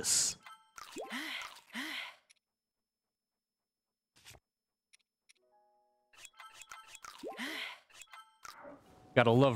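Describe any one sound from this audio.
Soft menu chimes and clicks sound in quick succession.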